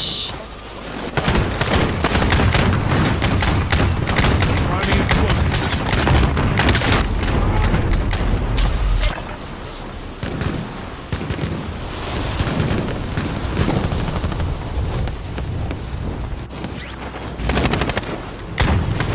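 Wind rushes loudly during a parachute fall.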